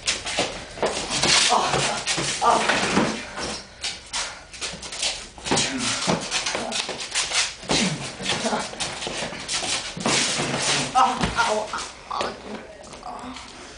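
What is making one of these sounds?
Young men shout and laugh with excitement nearby in an echoing room.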